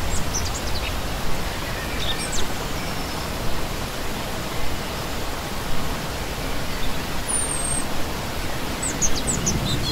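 A shallow stream rushes and splashes steadily over rocks.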